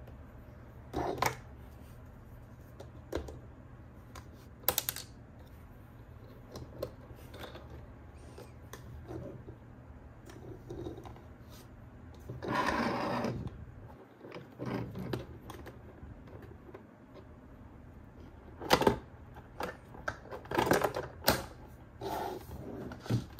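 Plastic toy parts click and rattle as hands handle them.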